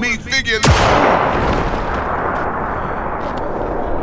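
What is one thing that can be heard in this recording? A pistol fires a single shot, with a ringing echo after it.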